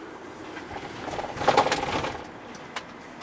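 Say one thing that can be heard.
A vehicle horn sounds briefly.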